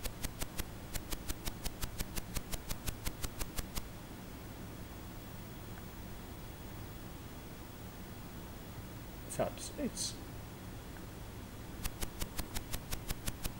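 A retro computer game ticks in a quick, even rhythm.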